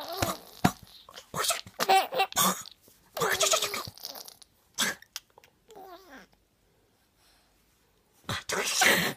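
A baby laughs close by.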